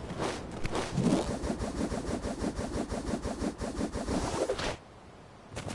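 A whirlwind whooshes loudly.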